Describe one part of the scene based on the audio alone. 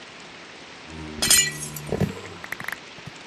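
A block breaks with a short crunch.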